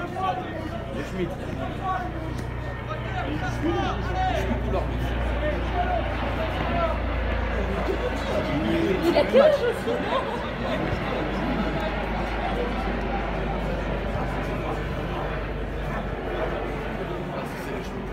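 Men shout and call out across a football pitch outdoors.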